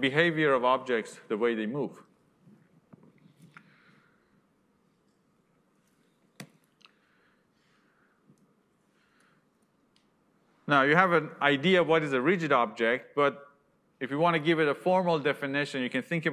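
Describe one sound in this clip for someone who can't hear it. A man lectures into a microphone, speaking calmly and clearly, with pauses.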